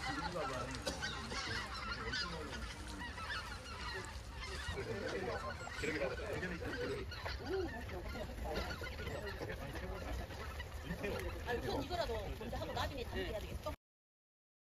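A large flock of geese honks overhead.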